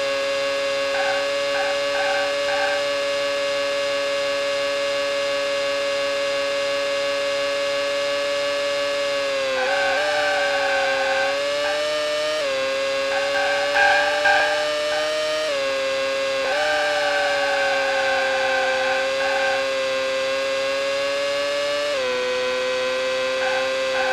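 Tyres squeal through the corners in short bursts.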